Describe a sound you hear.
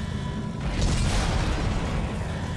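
A weapon fires with a loud crackling electric blast.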